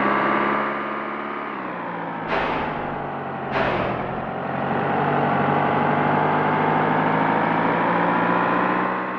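A truck engine drones steadily, its pitch dipping and then slowly rising.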